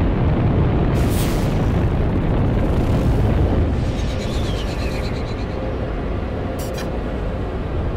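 Short electronic chimes ring out.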